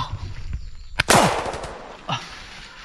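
A toy blaster fires with a short, loud electronic burst.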